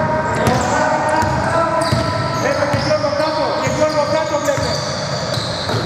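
A basketball bounces on a wooden court in an echoing hall.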